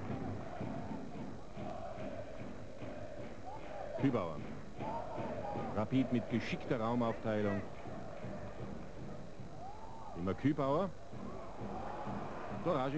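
A large crowd murmurs and cheers in a stadium.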